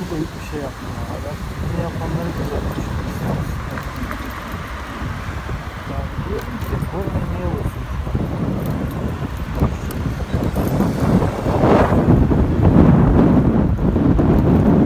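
Wind rushes past a moving motorcycle, growing louder.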